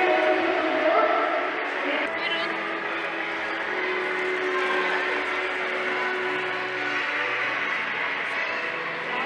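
Many children chatter and call out in a large echoing hall.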